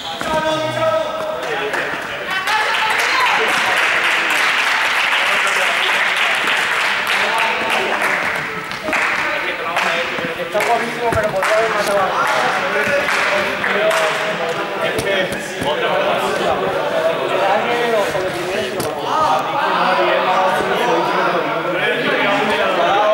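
A crowd of young people chatters and shouts, echoing in a large hall.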